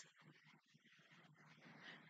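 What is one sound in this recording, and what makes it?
A young woman laughs softly close by.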